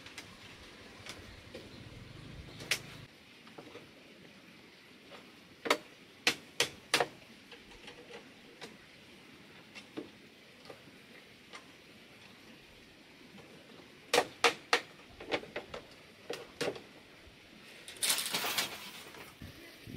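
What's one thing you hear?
Bamboo strips knock and clatter sharply.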